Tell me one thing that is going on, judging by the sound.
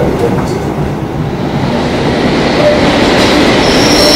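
A train rumbles into a station.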